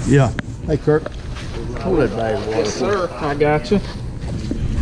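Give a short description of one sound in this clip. A man talks close by outdoors.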